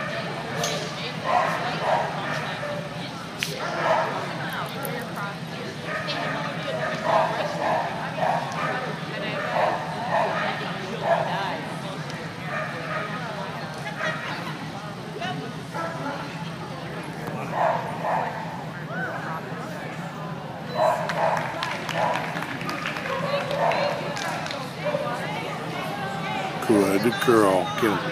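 A woman calls out commands from a distance in a large echoing hall.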